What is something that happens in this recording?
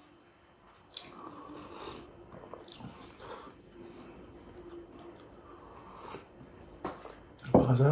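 A man slurps soup from a bowl.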